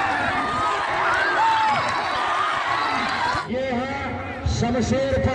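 A large crowd of men shouts and cheers outdoors.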